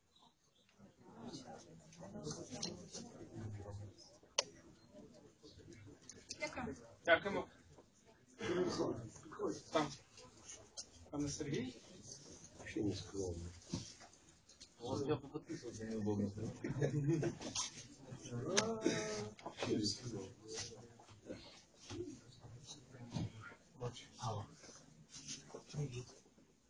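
Men and women talk nearby with animation.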